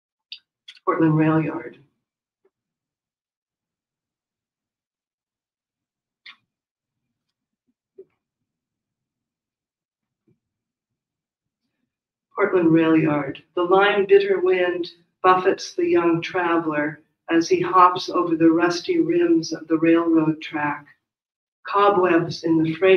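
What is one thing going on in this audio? An elderly man speaks calmly into a microphone, reading out with pauses.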